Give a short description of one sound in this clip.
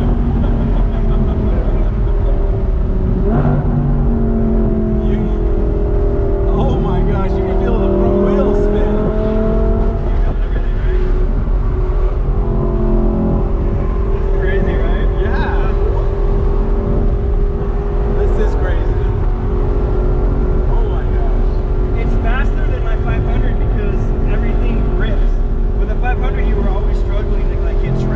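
A car engine hums and roars steadily from inside the cabin.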